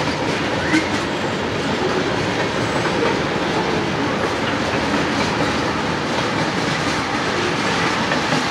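A freight train rumbles past with steady clattering of wheels on the rails.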